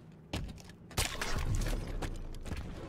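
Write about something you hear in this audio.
A blast booms and crackles.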